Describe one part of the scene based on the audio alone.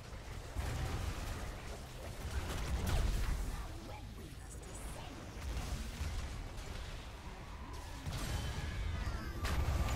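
Game spells blast and crackle in a battle.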